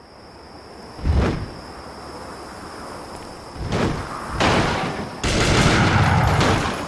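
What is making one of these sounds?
A heavy weapon swings and lands with loud thuds.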